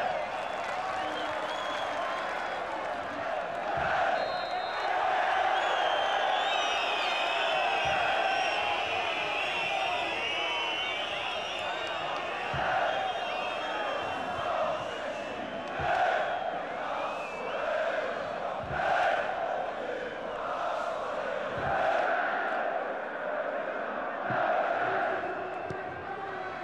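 A large stadium crowd chants and sings loudly in rhythm.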